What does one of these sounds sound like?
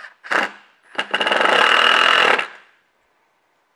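A cordless drill whirs as it drives into wood.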